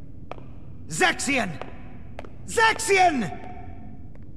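A young man calls out loudly, twice.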